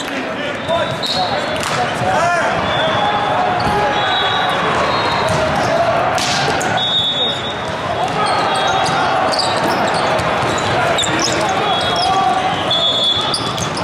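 A referee's whistle blows.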